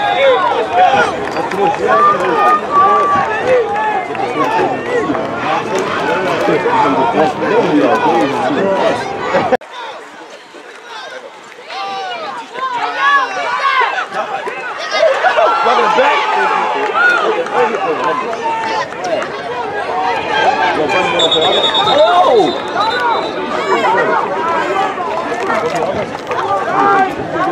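A crowd of children and adults shouts and chatters outdoors.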